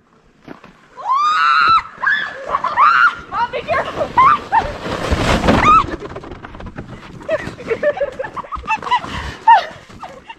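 A young woman shrieks and laughs loudly close by.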